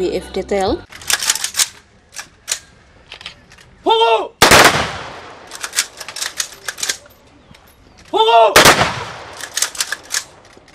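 Rifles clatter as soldiers handle them.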